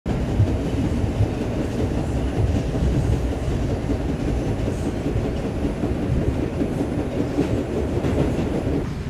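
A subway train rumbles loudly along the tracks.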